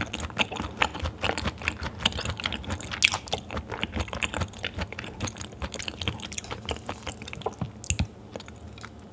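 A young woman chews raw beef wetly, close to the microphone.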